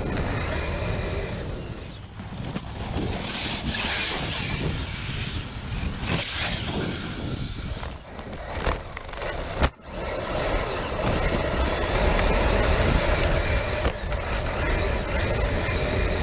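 Wind rumbles and buffets close by.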